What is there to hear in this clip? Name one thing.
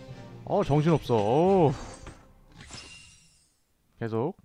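A short, bright victory jingle plays with sparkling chimes.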